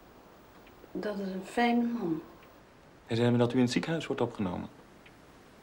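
A man speaks calmly and softly nearby.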